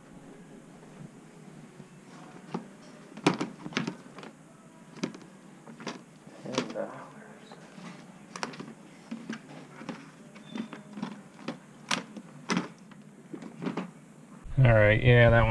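Plastic game cases click and clatter as a hand flips through them.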